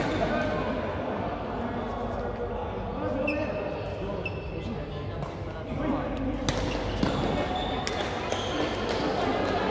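Rackets smack a shuttlecock back and forth.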